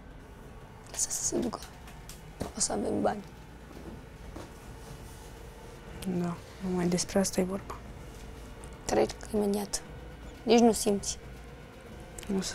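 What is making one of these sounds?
A woman speaks softly and gently nearby.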